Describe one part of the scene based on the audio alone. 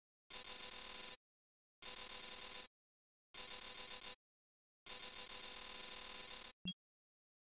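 A game's score counter ticks rapidly in several short bursts.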